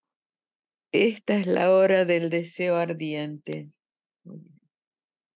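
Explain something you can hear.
An elderly woman speaks through a microphone.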